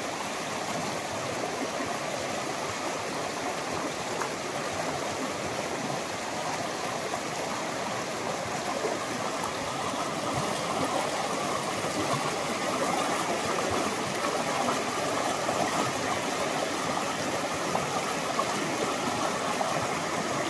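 A fast creek rushes and splashes over rocks, growing louder close by.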